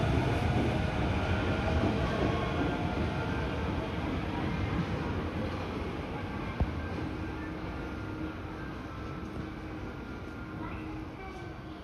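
A train pulls out and rumbles away, slowly fading.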